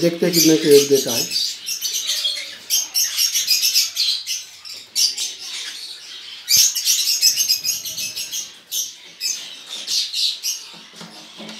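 Small parrots chirp and chatter loudly, close by.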